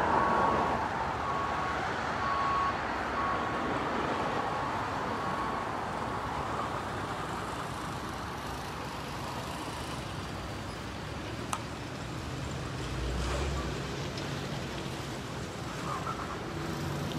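Wind blows steadily outdoors, rustling palm leaves.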